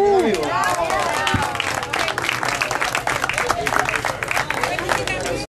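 A crowd claps rhythmically.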